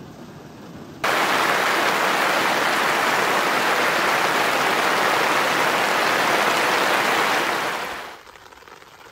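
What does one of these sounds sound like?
Heavy rain pours down with a loud, steady roar.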